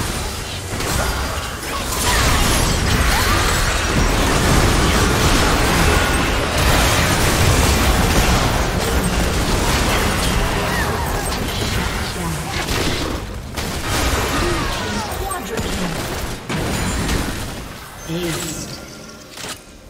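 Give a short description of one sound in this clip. Spell blasts, hits and explosions from a video game battle crash and crackle loudly.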